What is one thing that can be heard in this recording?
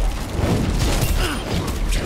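A loud game explosion bursts with a roar.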